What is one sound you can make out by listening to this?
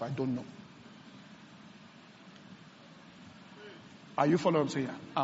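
A man speaks calmly into a microphone, with a pause.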